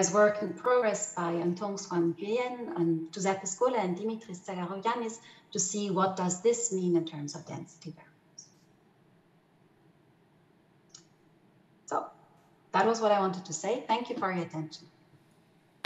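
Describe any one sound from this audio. A woman speaks calmly through a microphone on an online call.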